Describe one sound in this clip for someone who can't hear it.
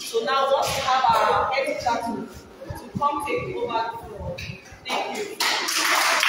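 A young woman sings loudly nearby.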